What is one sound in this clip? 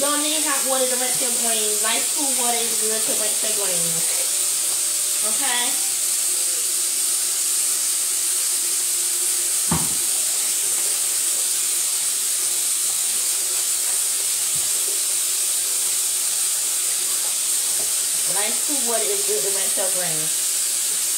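A woman sings nearby.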